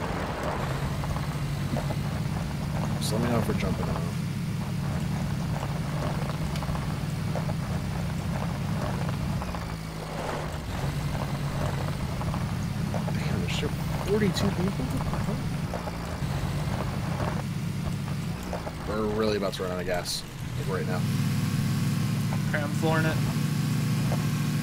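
A vehicle engine drones steadily.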